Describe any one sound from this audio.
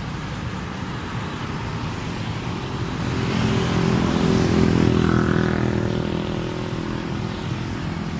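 Traffic rumbles past on a wide road outdoors.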